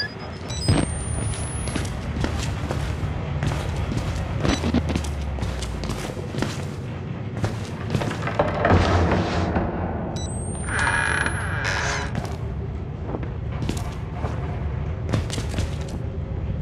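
Footsteps tread at a steady pace across a hard floor.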